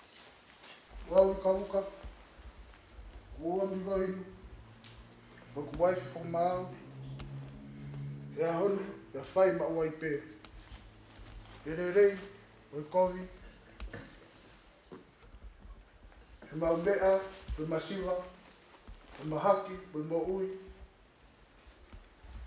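A man speaks calmly and formally into a microphone.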